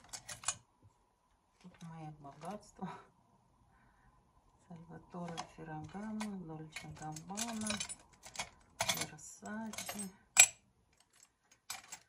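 Metal buckles clink against each other in a plastic box.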